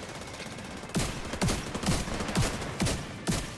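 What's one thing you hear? A rifle fires single loud shots at a steady pace.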